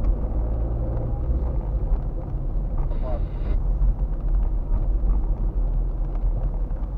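Tyres roll over a wet road.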